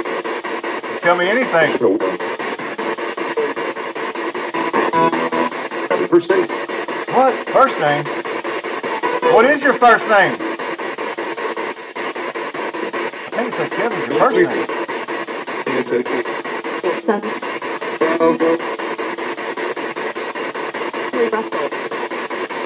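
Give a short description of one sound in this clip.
Brief voice fragments crackle out of a small radio speaker.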